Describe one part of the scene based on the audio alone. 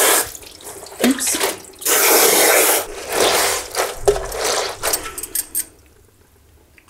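Damp paper pulp squelches and rustles as hands squeeze it.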